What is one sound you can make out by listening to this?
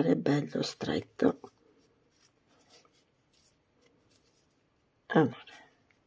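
Yarn rustles softly as a crochet hook pulls it through stitches.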